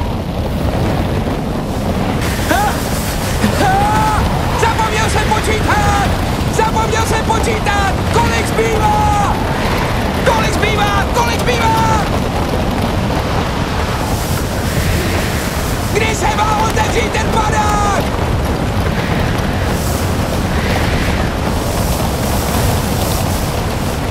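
Wind roars loudly and steadily.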